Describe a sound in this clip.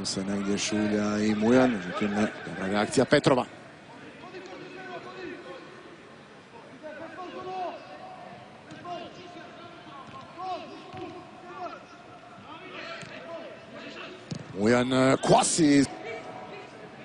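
A large crowd cheers and chants loudly in a stadium.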